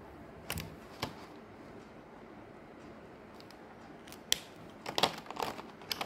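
A plastic marker pack crinkles and rustles as hands handle it.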